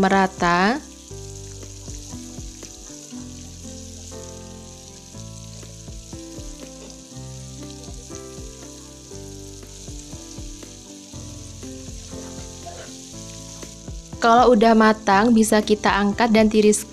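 Oil sizzles and bubbles steadily in a frying pan.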